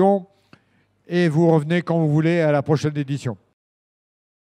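A man speaks with animation through a microphone and loudspeaker.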